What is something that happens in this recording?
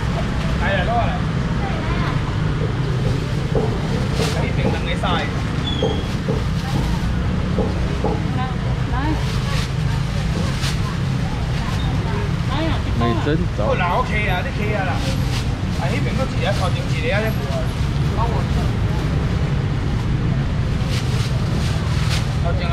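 Voices of a busy crowd chatter all around.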